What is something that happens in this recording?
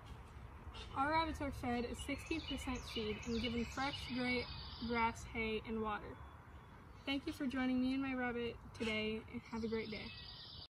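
A girl speaks calmly and clearly, close by.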